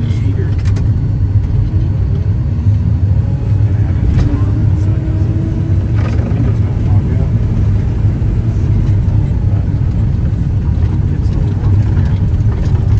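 Thrown snow sprays and patters against a windscreen.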